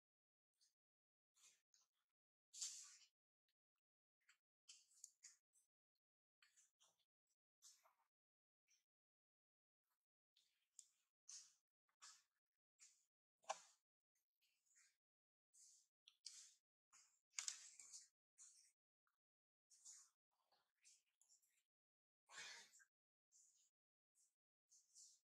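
A newborn monkey suckles with soft, wet smacking sounds, on and off.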